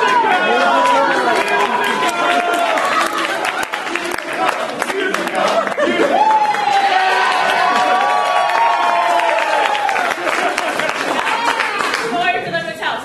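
Several young men sing and chant loudly together in an echoing hall.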